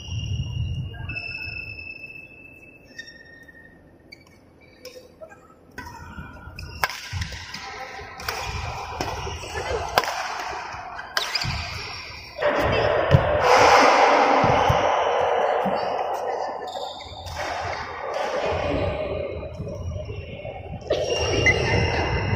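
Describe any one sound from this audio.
Sneakers squeak and thud on the court floor.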